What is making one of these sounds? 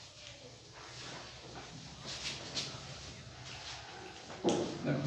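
Chalk taps and scratches on a blackboard.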